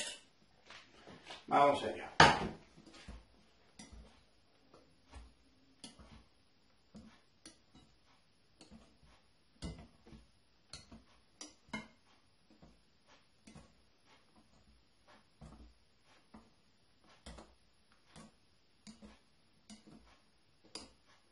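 A spoon scrapes and taps against a glass bowl while stirring.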